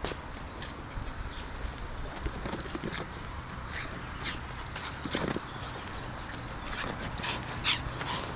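A small dog's paws scuff and patter on dry earth.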